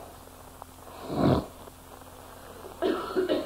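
A man slurps a drink from a mug.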